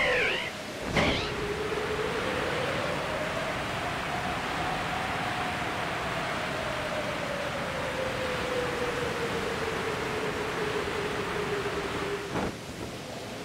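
Wind rushes steadily past during a glide, then drops away.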